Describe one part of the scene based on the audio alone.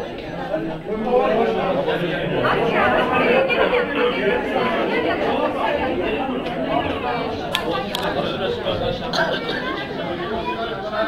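A crowd of men talk over one another loudly nearby.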